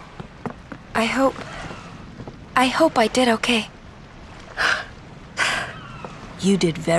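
A young woman speaks softly and hesitantly.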